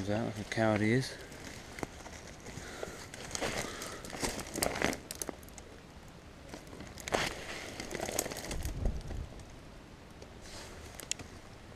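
Leaves and twigs rustle and crackle.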